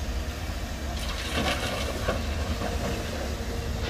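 Rocks and earth clatter into a dump truck bed.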